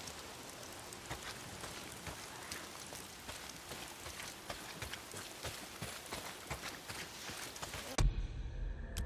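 Footsteps crunch softly through grass and dirt.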